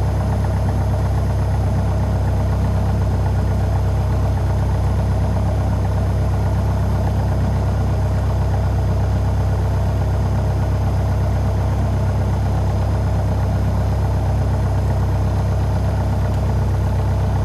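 A small propeller airplane engine drones loudly and steadily from inside the cockpit.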